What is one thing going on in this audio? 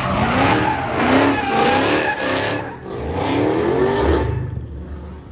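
Tyres screech loudly as a car drifts nearby.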